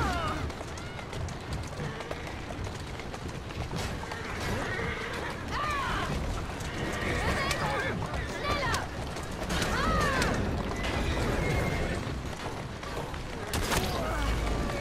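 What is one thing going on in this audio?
Horse hooves clop steadily on cobblestones.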